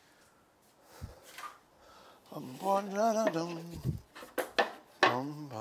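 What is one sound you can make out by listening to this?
Wooden boxes knock and clatter on a table.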